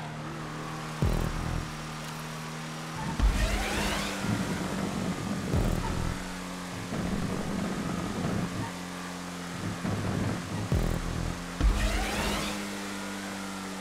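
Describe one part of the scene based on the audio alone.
Car tyres rumble and thump over bumps in the track.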